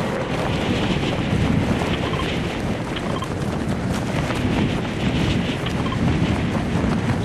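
Wind rushes loudly and steadily past a falling skydiver.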